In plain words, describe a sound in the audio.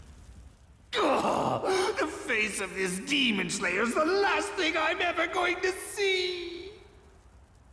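A man speaks in a strained, pained voice, close up.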